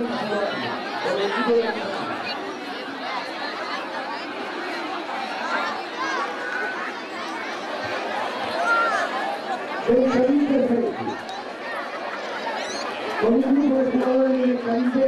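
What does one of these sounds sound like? A crowd of young people and adults chatters outdoors.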